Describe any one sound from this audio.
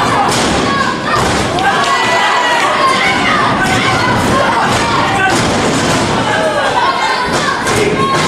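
Bodies slam onto a wrestling ring mat with loud thuds.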